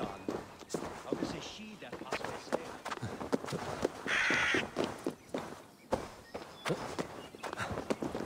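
Leaves and grass rustle as someone climbs through.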